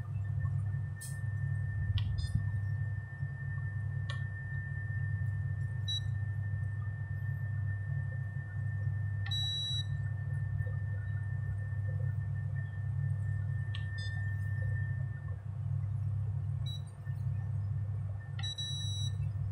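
Buttons click under a finger.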